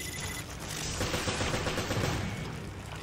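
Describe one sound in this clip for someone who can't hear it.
A gunshot fires.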